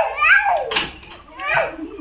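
A metal gate rattles.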